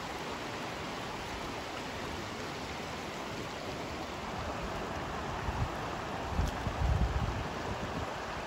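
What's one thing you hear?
A shallow stream rushes and burbles over rocks.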